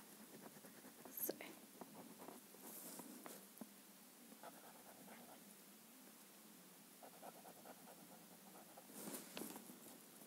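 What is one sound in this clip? Paper rustles under a girl's hands.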